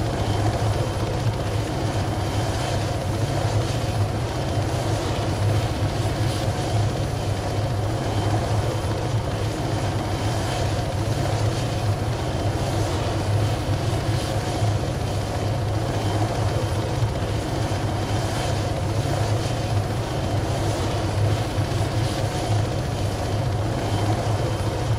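A helicopter's rotor thumps and its engine drones steadily throughout.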